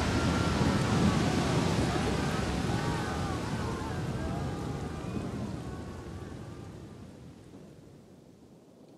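A large fire roars and crackles, then fades away.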